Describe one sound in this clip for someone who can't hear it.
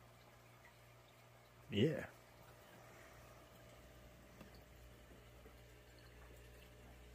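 An aquarium pump hums quietly.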